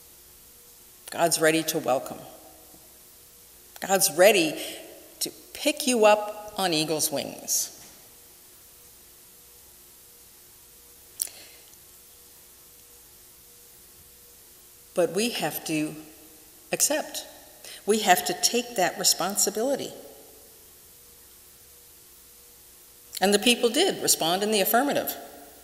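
A middle-aged woman speaks calmly into a microphone, with pauses, in a room with some echo.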